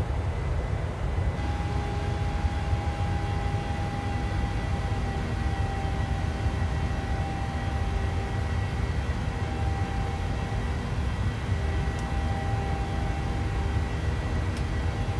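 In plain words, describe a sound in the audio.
Jet engines roar steadily with a deep rumble and a faint whine.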